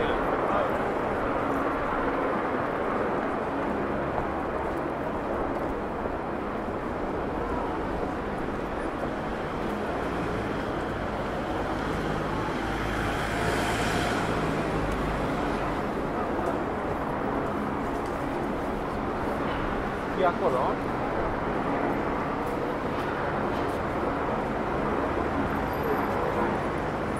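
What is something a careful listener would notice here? A crowd of passers-by murmurs and chats around.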